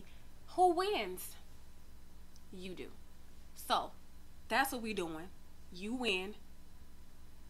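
A young woman speaks with animation close to a microphone, in short bursts.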